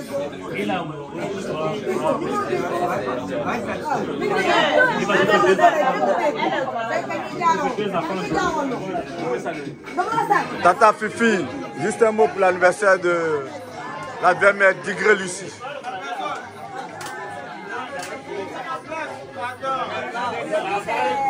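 A crowd of people chatter and laugh loudly in a busy room.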